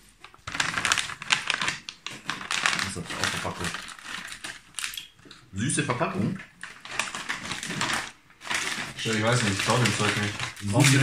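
A plastic snack bag crinkles and rustles as it is handled.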